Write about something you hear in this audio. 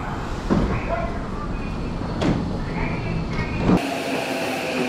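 A train pulls away from the platform with a rumbling roar.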